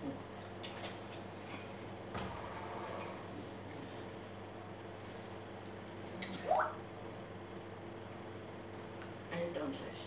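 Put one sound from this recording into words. A plastic water bottle crackles in a hand.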